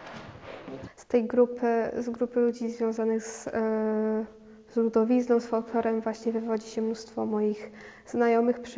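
A young woman speaks calmly and close into a microphone.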